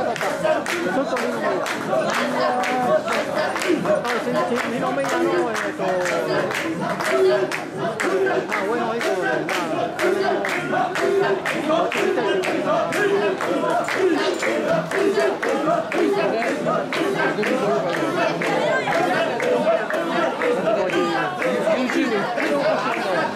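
A crowd of men chants loudly in rhythm, close by and outdoors.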